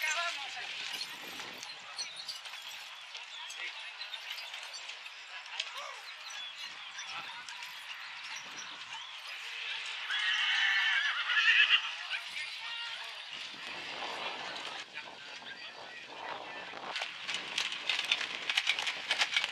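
Carriage wheels roll and rattle over the ground.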